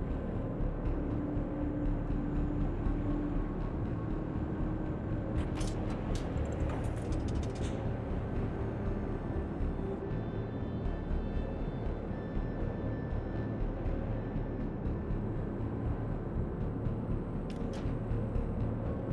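Waves wash and splash against a ship's hull.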